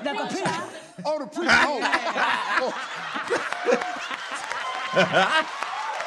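A man laughs along through a headset microphone.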